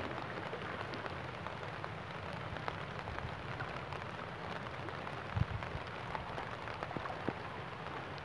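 A man wades through water with soft sloshing.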